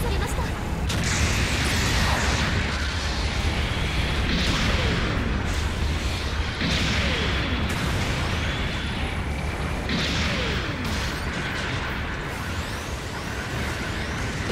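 A jet thruster roars in repeated bursts of rushing hiss.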